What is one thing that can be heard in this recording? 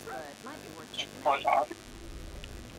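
A young woman speaks casually, close by.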